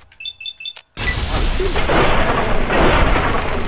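An explosion bursts with a loud roar.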